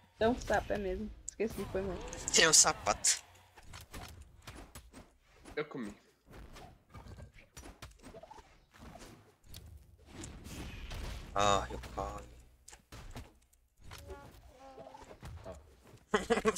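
Punches and swooshes from a fighting game crack and whoosh in quick bursts.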